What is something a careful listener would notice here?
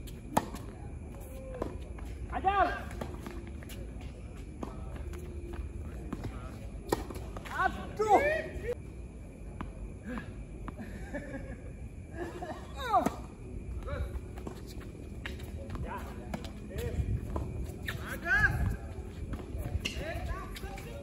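Rackets strike a tennis ball with sharp pops back and forth.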